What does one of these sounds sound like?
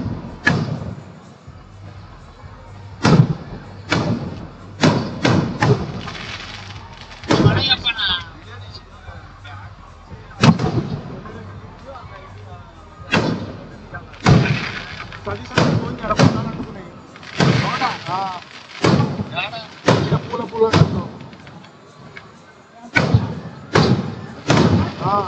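Fireworks crackle and sizzle after the bursts.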